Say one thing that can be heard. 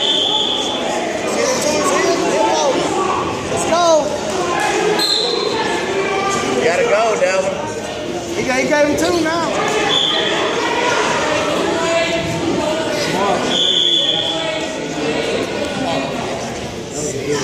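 A crowd of spectators talks and shouts in a large echoing gym.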